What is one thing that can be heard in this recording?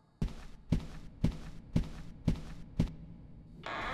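Footsteps thud on a hard floor at a steady walking pace.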